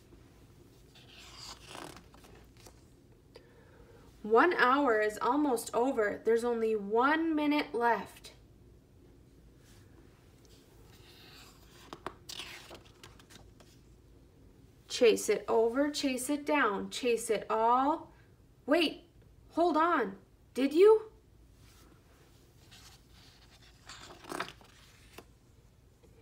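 A paper page turns with a soft rustle.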